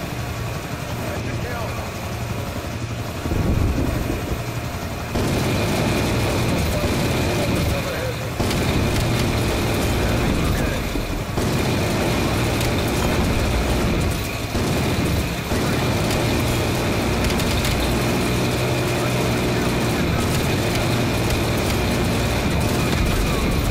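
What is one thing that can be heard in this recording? A helicopter engine drones steadily.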